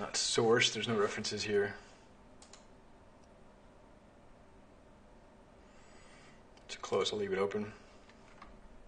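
A young man speaks calmly and close to a microphone, in short bursts.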